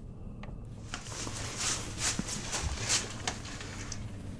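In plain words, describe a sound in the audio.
A person breathes heavily through a gas mask.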